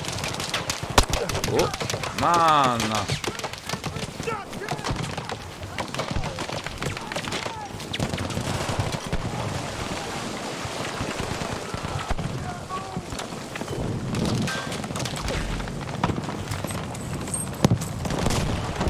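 Gunshots crack from a rifle.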